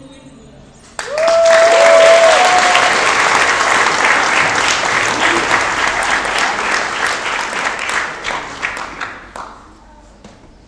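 A congregation applauds loudly in an echoing hall, then the clapping fades away.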